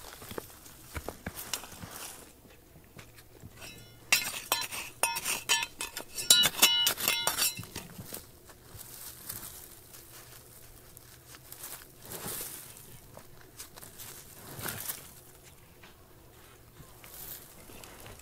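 Loose soil and small pebbles trickle and patter down a slope.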